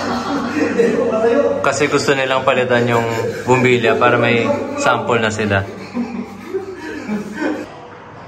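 A man laughs loudly nearby.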